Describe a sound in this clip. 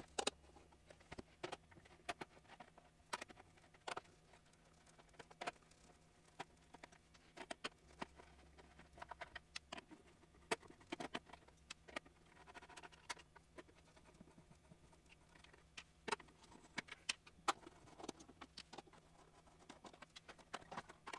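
Sharp knocks and clicks come as a plastic helmet is handled on a workbench.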